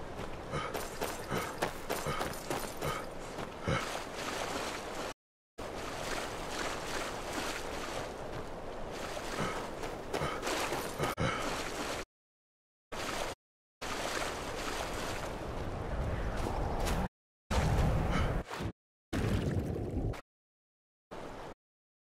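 Waves wash gently against a shore.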